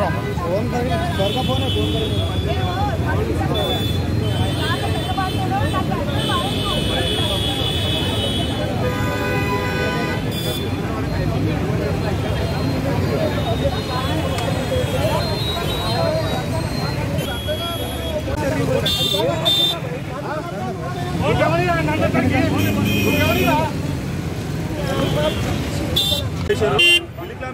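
A crowd of men talks loudly all around, outdoors.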